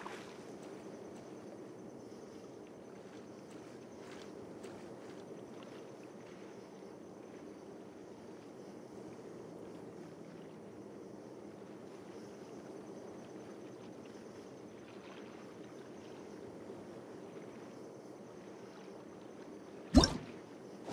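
Water laps gently in a steady, quiet hum.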